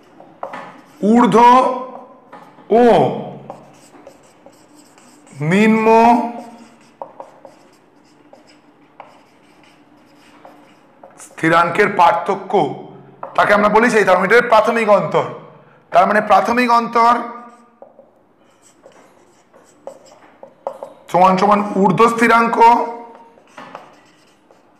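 A man speaks calmly and clearly nearby, in short phrases with pauses.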